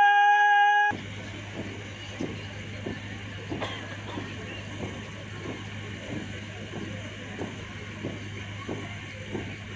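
A group of marchers stamp their feet in a steady rhythm outdoors.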